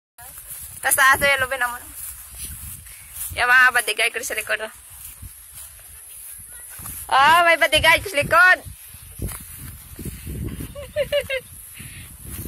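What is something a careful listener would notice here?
A young boy shouts and calls out playfully close by.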